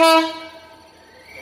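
A diesel locomotive sounds its horn briefly.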